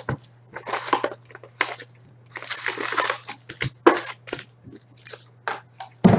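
Cardboard scrapes and taps as a box lid is opened.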